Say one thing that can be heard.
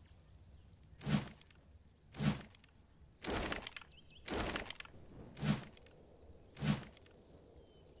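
A guitar is strummed in loud chords.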